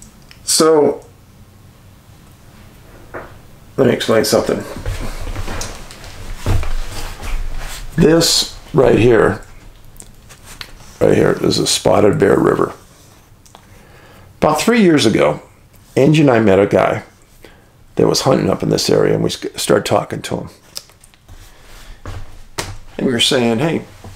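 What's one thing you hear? A middle-aged man speaks calmly and closely into a microphone, in bursts with pauses.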